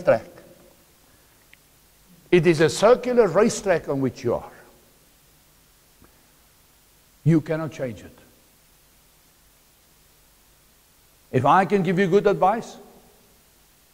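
A middle-aged man speaks with animation through a lapel microphone, in short bursts with pauses.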